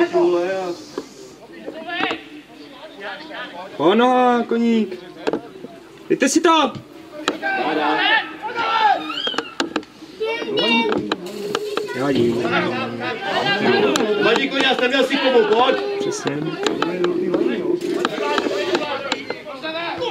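Men shout and call out to each other outdoors at a distance.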